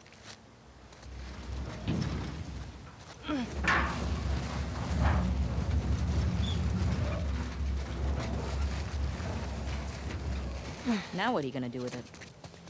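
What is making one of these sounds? A heavy metal dumpster scrapes and rumbles along the ground.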